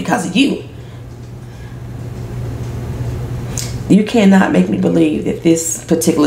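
A woman speaks calmly and earnestly, close to the microphone.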